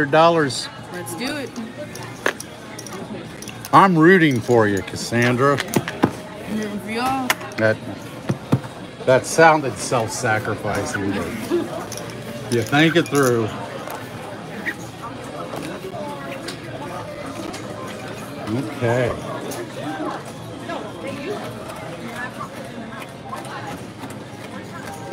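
Casino chips clack together as a hand stacks them.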